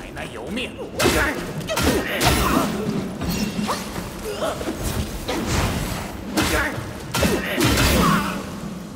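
A staff strikes enemies with sharp, heavy blows.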